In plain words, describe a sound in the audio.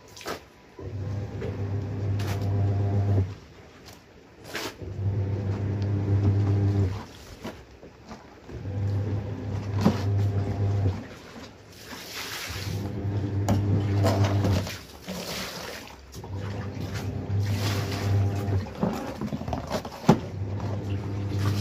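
Water sloshes and splashes in a tub as clothes are scrubbed by hand.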